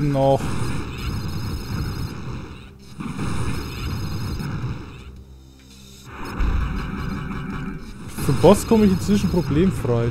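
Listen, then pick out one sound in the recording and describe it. A video game electric beam crackles.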